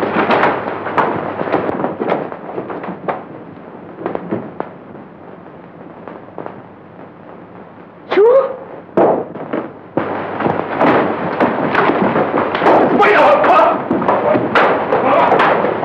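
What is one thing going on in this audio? Footsteps thud quickly across a floor.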